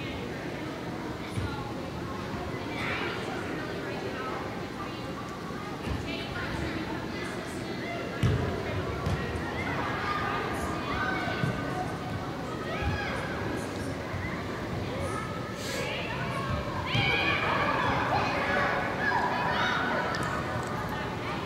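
Young women shout and call to each other across a large echoing hall.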